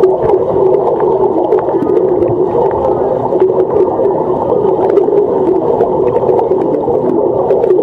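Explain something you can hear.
Water churns and bubbles, muffled underwater, as a swimmer kicks and strokes.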